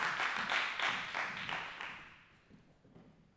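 An audience applauds in an echoing hall, and the clapping quickly dies away.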